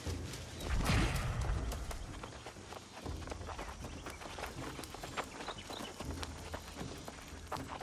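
Footsteps run over dirt ground.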